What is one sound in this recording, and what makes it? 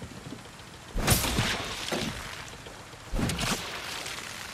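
A blade strikes a wooden barrel with sharp cracks.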